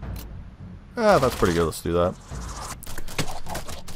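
A weapon swings and misses its target.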